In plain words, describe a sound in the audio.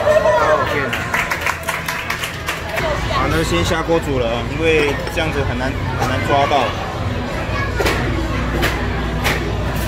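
Young men and women talk and laugh over one another nearby.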